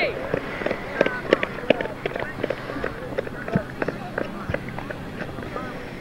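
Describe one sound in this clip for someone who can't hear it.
Runners' feet pound on a track nearby.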